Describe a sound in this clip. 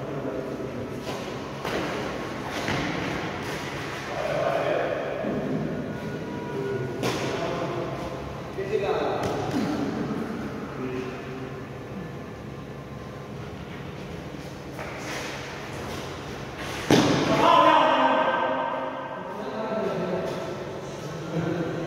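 Shoes squeak and scuff on a hard floor.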